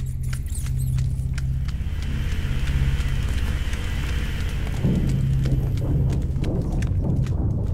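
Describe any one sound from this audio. Footsteps shuffle over a gritty floor.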